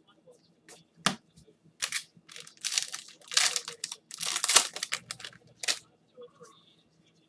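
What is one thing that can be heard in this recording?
A foil pack wrapper crinkles and tears as it is opened.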